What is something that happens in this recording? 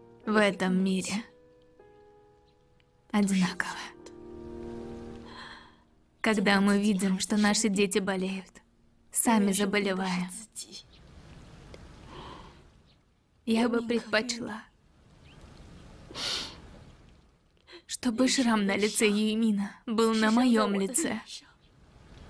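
A woman speaks close by in a tearful, pleading voice.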